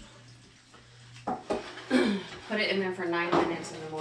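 A metal pan scrapes and clanks on a stovetop.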